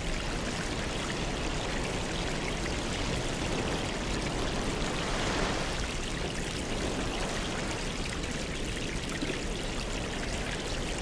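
Air bubbles stream and fizz steadily through water.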